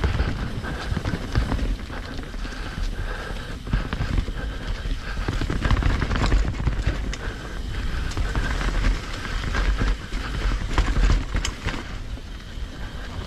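A bicycle's frame rattles and clicks over bumps.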